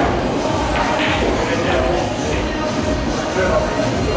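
Pool balls clack together on a table.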